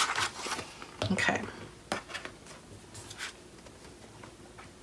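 A sheet of paper rustles as it is lifted.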